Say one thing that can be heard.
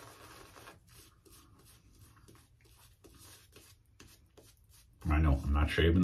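A shaving brush swishes in quick, repeated strokes against skin.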